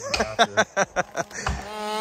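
A bearded man talks excitedly outdoors.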